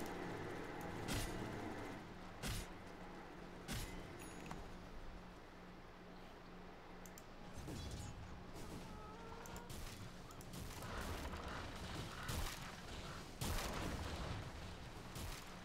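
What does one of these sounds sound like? Magic spells whoosh and crackle in bursts.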